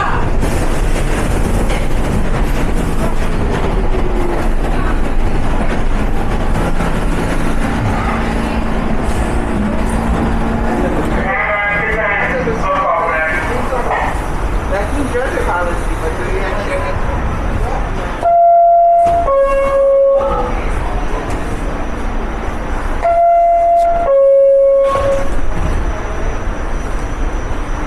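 A subway train hums and rumbles steadily at a platform.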